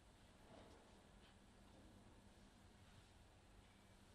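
A snooker ball is set down on the cloth of a table.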